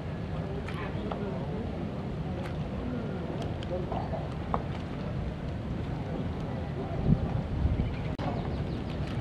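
A fishing reel clicks and whirs as its handle is turned.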